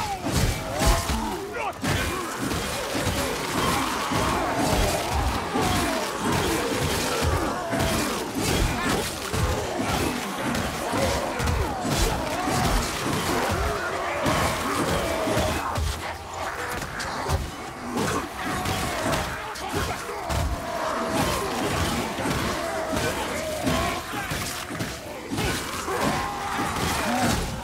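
A crowd of creatures snarls and growls.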